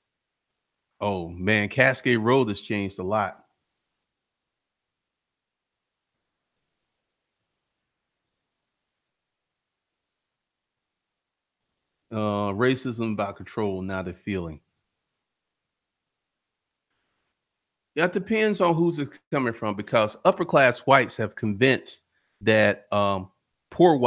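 A man speaks calmly and closely into a microphone, with long pauses.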